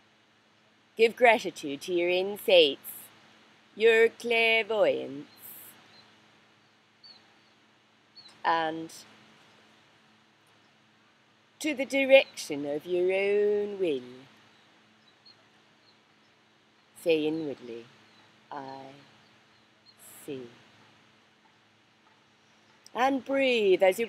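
A middle-aged woman speaks slowly and calmly, close to the microphone, with long pauses.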